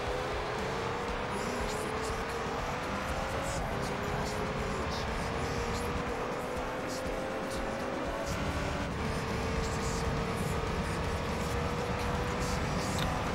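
A racing car engine roars and climbs in pitch, dropping briefly with each gear change.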